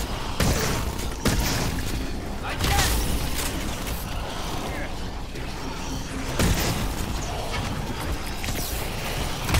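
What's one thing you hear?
A heavy gun fires in loud blasts.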